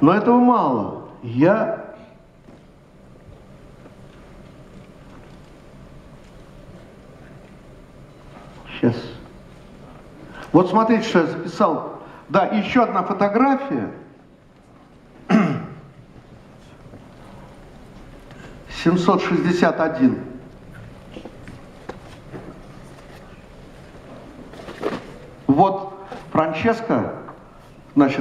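An elderly man speaks calmly into a microphone in a large hall, with long pauses.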